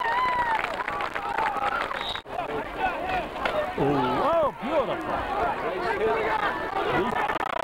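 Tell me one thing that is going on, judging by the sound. A crowd cheers outdoors.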